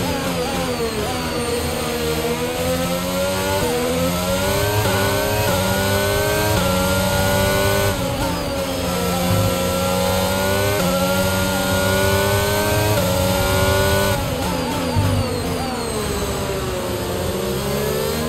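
A racing car engine winds down as the car slows for corners.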